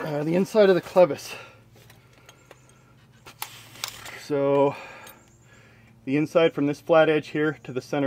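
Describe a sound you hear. Metal parts clink as a wrench turns a fitting.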